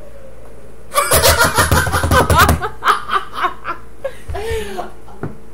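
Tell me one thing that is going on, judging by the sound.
A young woman laughs loudly close to a microphone.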